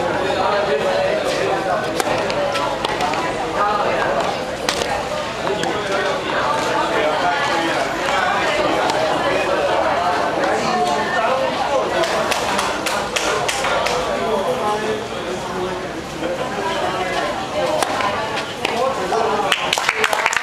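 Men talk nearby in a lively way.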